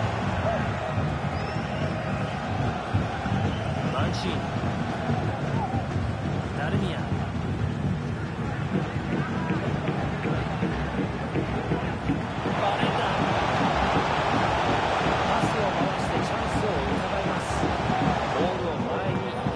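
A stadium crowd roars and chants steadily, swelling louder as an attack builds.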